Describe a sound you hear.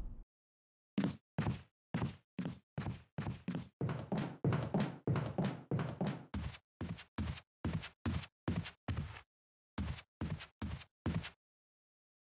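Footsteps thud steadily on wooden stairs and floors.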